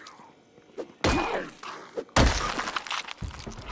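A weapon strikes a body with heavy, wet thuds.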